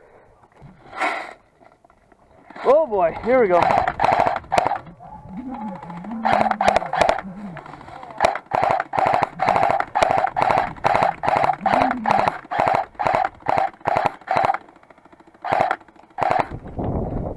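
Rifle shots fire close by in quick bursts.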